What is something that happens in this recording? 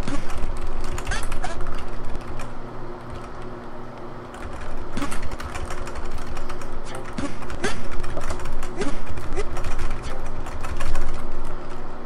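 Video game music plays steadily.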